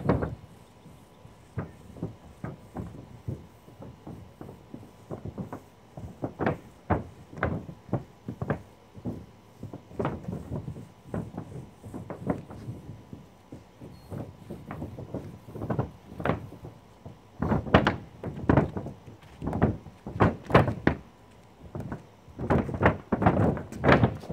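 A roller or brush scrapes and rasps across a rooftop surface in repeated strokes.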